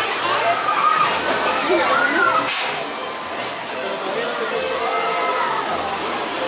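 A waterfall splashes steadily onto rocks.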